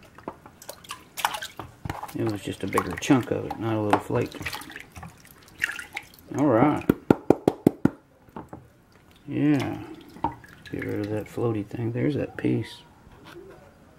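Water sloshes and splashes in a tub.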